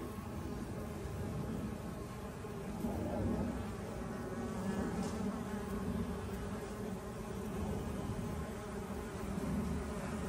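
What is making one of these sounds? Many bees buzz steadily up close.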